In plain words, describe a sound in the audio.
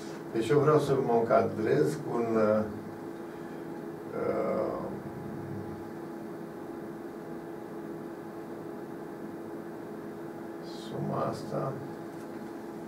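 An elderly man speaks calmly in short bursts.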